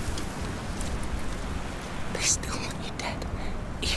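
Footsteps squelch on wet mud.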